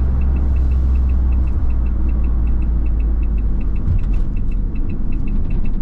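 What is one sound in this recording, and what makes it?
Tyres roll on the road with a low rumble.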